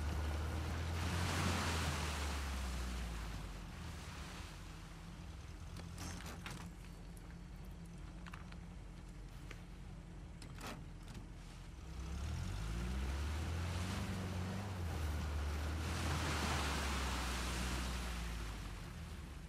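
Water splashes under the jeep's tyres.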